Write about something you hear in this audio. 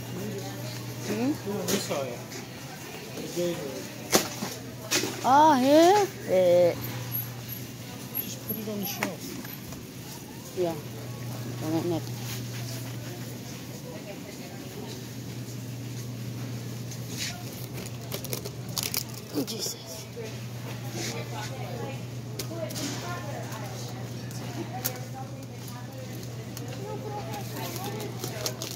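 A shopping cart rolls and rattles over a smooth floor.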